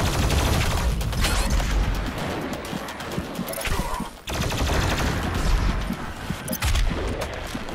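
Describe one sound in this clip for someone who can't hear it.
Loud explosions boom and rumble.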